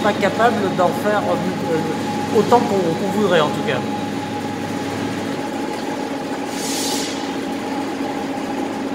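Factory machinery hums steadily.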